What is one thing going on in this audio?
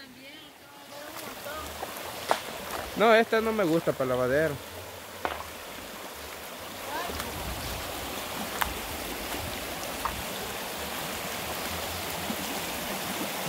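A shallow stream babbles and rushes over rocks.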